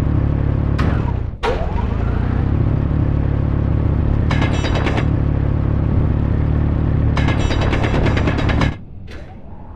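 A hand drill grinds loudly through rock with a deep roar.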